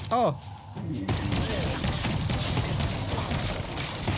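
Gunshots and blasts ring out rapidly in a fight.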